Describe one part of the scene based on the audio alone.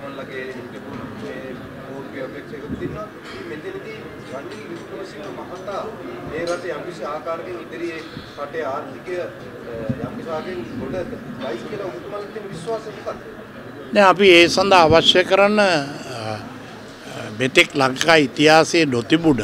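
An older man speaks into microphones, calmly at first, then louder and more forcefully.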